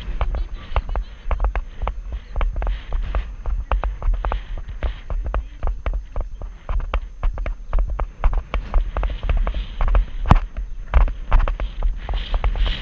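A horse's hooves thud rhythmically on soft sand.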